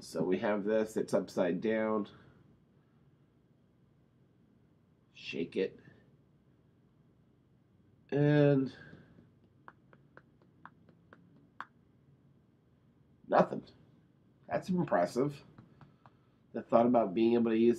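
A middle-aged man talks calmly and close by, in short bursts with pauses.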